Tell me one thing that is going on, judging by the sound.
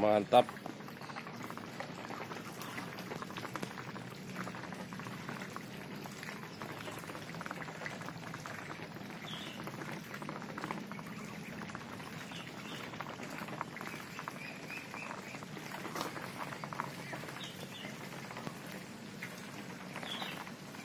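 Ducks quack and hiss softly nearby.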